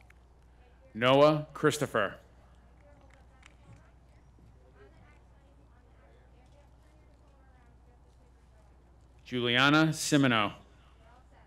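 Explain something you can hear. A man reads out names over a loudspeaker outdoors.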